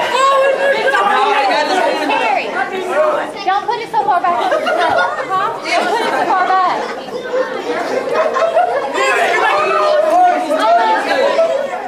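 Boys laugh loudly together.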